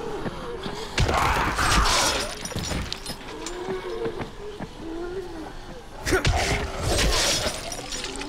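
Heavy blows thud against a body.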